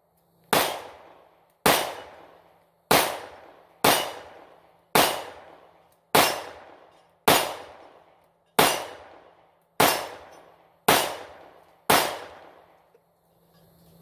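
A pistol fires shot after shot at an even pace, each bang echoing through the woods outdoors.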